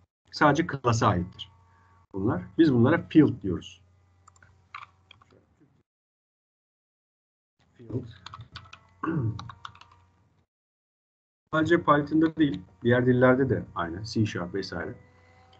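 A man speaks calmly through an online call, in bursts with pauses.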